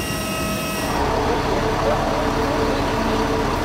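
A bus engine idles with a low rumble.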